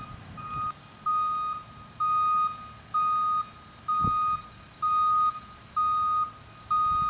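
A diesel engine rumbles low.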